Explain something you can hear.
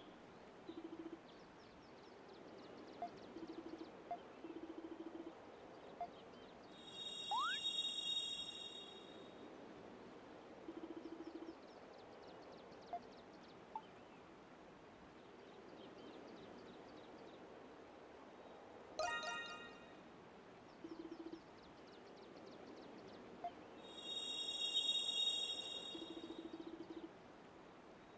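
Short electronic blips sound in quick bursts.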